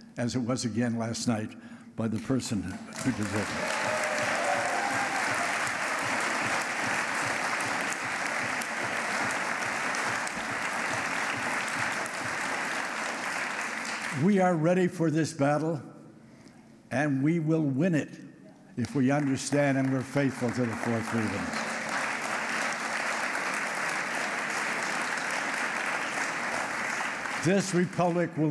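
An elderly man speaks slowly and calmly through a microphone.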